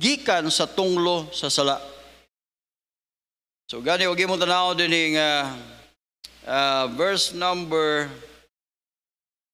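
A man speaks calmly into a microphone, heard through a loudspeaker in a large echoing hall.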